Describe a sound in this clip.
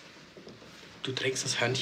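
A middle-aged man speaks with animation close by.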